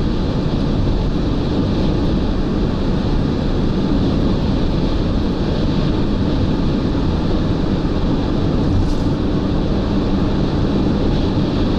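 Tyres hum loudly on a highway.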